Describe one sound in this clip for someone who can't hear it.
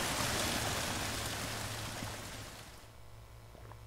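Water gushes from a pipe and splashes down.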